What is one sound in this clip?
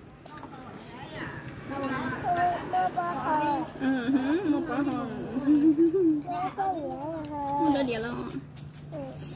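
A young boy talks nearby with animation.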